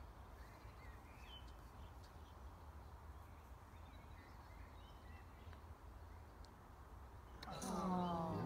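Wind rumbles softly outdoors.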